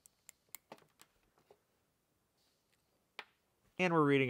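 Small plastic cable connectors click and snap together.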